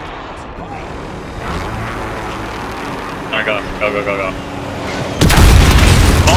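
A helicopter's rotor thumps as it flies.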